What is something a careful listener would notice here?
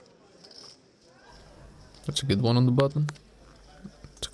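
Poker chips click and clatter as they are shuffled in a hand.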